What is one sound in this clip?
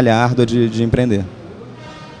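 A young man speaks into a microphone through loudspeakers.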